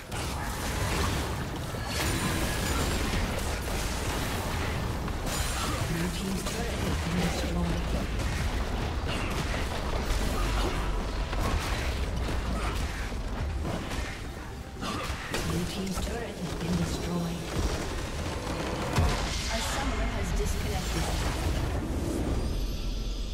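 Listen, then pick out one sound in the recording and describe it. Game spells crackle and explode in a hectic fight.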